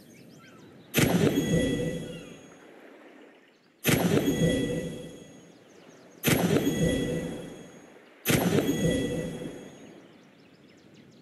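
A treasure chest in a game rattles with loud, ringing bursts, several times.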